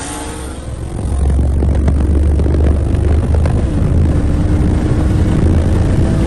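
A deep rumble of wind and road noise fills a speeding car.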